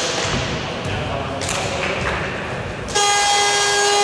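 Sneakers squeak on a hard court in an echoing gym.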